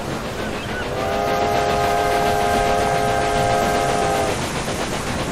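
A steam locomotive's whistle blows a loud, steady chord.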